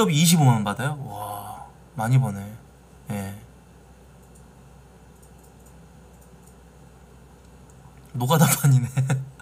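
A man speaks casually into a close microphone, in short bursts.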